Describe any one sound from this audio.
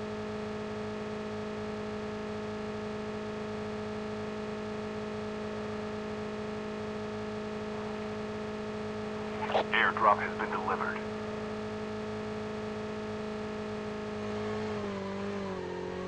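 A motorbike engine drones steadily.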